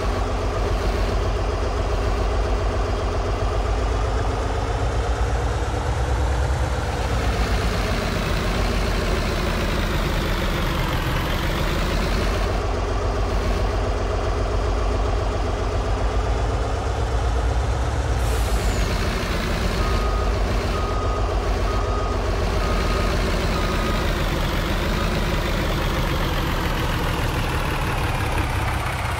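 A heavy truck engine rumbles steadily, its pitch rising and falling as it drives.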